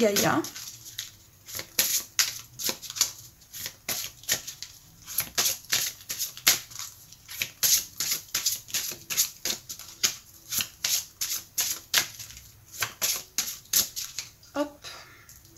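Playing cards riffle and slap together as a deck is shuffled quickly by hand.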